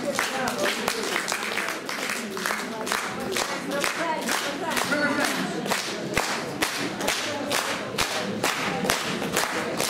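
A woman speaks with animation through a microphone over a loudspeaker.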